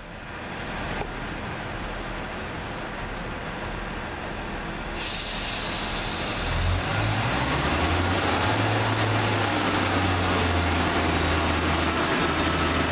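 A Class 142 Pacer diesel railbus approaches with a low engine rumble.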